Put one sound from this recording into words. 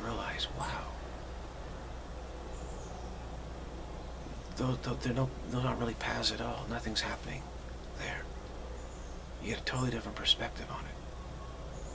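A middle-aged man speaks calmly and haltingly, close to a microphone.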